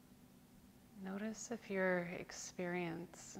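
A woman speaks softly and calmly, close by.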